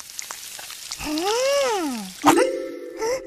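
A young boy's cartoon voice hums with pleasure, rising and falling.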